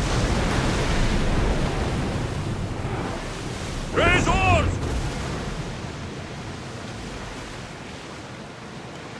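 Waves rush and splash against a sailing ship's hull.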